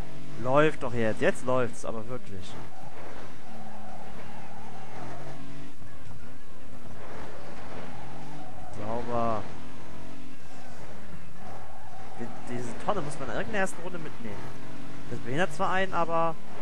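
A racing car engine roars and revs up and down through gear changes.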